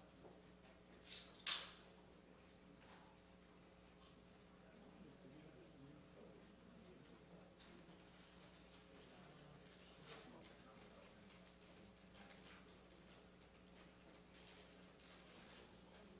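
A seated audience murmurs quietly in a room.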